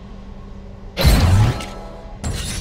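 A menu opens with a loud whoosh.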